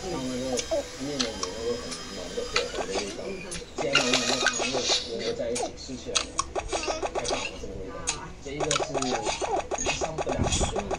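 Cheerful game music and jingles play from small phone speakers.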